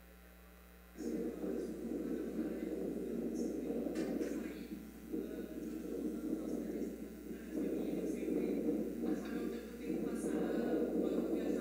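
A young woman talks calmly through a loudspeaker in a large hall.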